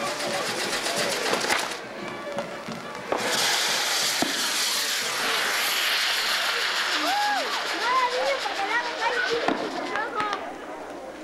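Fireworks crackle and pop sharply.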